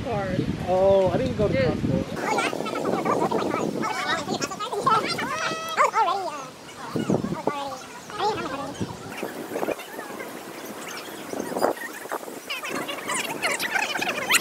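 Young women and men chat and laugh together close by, outdoors.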